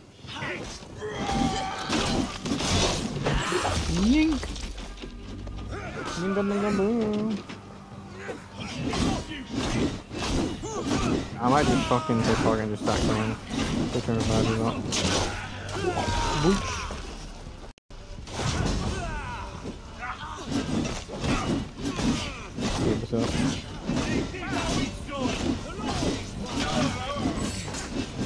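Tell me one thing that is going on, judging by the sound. Men shout and grunt loudly as they fight.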